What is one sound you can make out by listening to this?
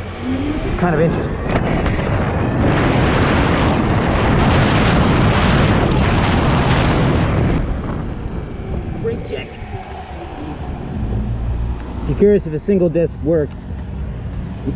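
A motorcycle engine hums and revs as it rides along.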